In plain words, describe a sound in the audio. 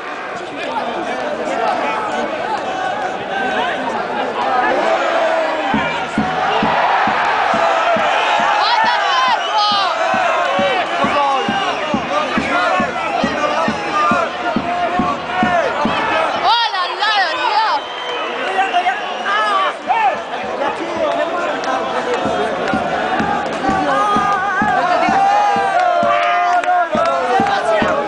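A crowd cheers and roars.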